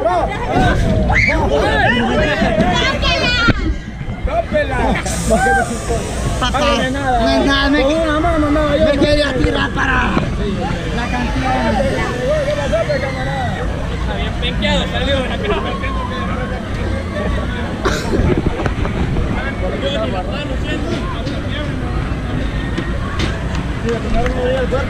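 A crowd of men and women chatter close by, with voices overlapping.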